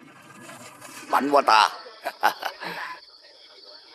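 A middle-aged man laughs loudly and heartily.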